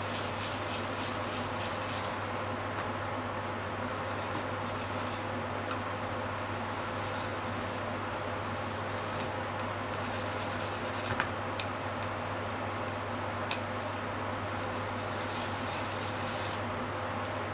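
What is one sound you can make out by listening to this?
Something is rubbed back and forth on a grater with a dry, scraping rasp.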